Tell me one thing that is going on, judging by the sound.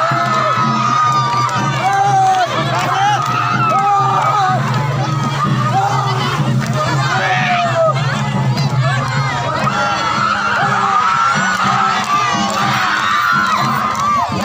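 Women clap their hands in rhythm.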